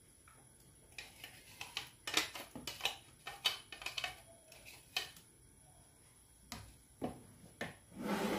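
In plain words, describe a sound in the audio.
A plastic container knocks and taps against a bowl.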